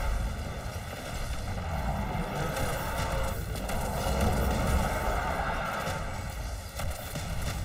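A heavy gun fires rapid bursts.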